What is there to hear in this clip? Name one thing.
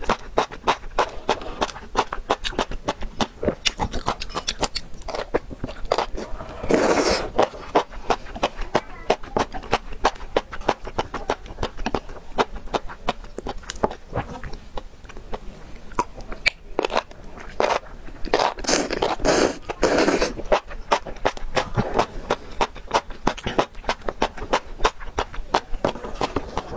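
A young woman chews food wetly and smacks her lips close to a microphone.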